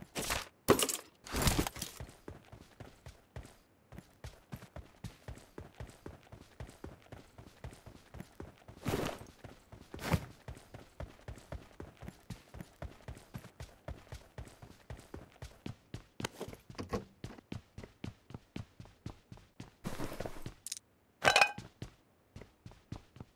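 Items click and rustle as they are picked up.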